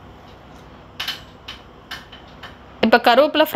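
A metal spoon scrapes and clinks against a pan while stirring.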